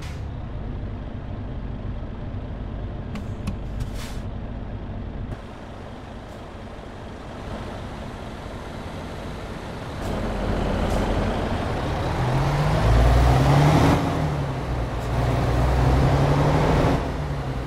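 A heavy truck engine rumbles steadily, growing louder and revving higher toward the end.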